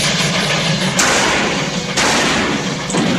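Gunshots ring out.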